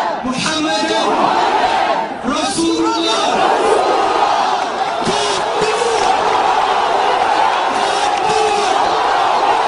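Young men shout close by, over a crowd.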